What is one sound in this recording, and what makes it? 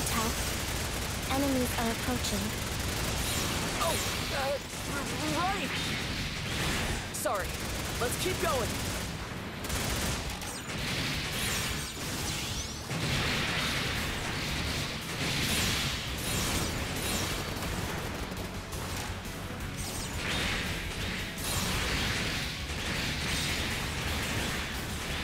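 Laser blasts and explosions crackle and boom in a video game battle.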